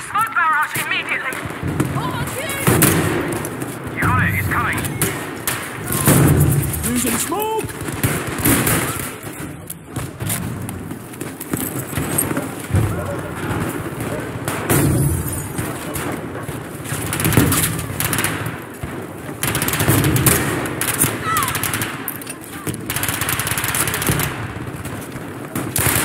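Gunshots fire rapidly and echo off hard walls.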